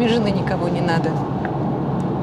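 A woman speaks softly and close by.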